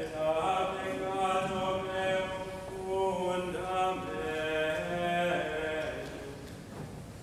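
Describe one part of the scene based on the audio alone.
A large congregation sings a hymn together in an echoing hall.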